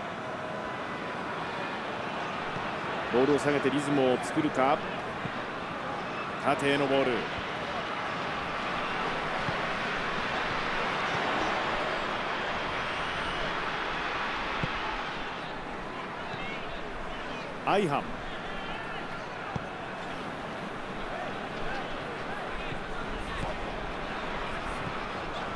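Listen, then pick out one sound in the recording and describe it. A large stadium crowd roars steadily, swelling and easing.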